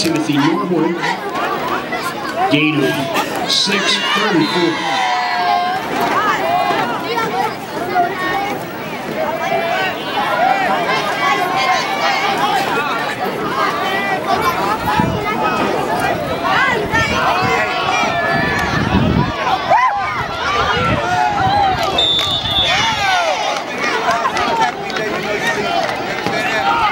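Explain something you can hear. A crowd of spectators talks and cheers loudly outdoors.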